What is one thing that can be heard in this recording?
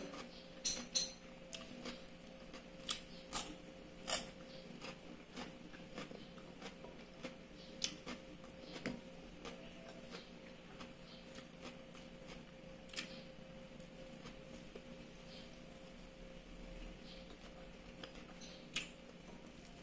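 Crisp food crunches and crackles as a woman bites it.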